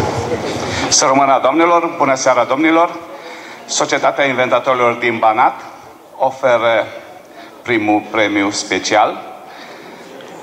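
An older man reads aloud through a microphone and loudspeakers in a large echoing hall.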